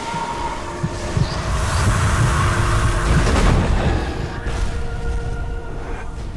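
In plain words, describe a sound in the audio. An icy blast roars and rushes.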